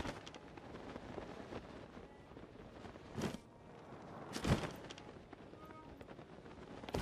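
Wind rushes past as a glider swoops down.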